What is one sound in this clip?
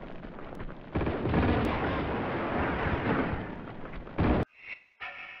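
Gunfire and an explosion roar loudly.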